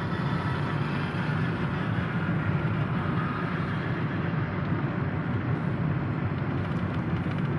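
A car engine hums steadily and tyres rumble on the road, heard from inside the car.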